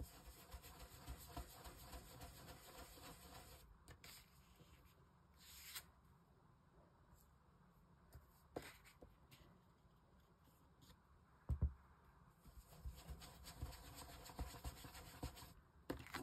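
A foam applicator dabs softly on paper.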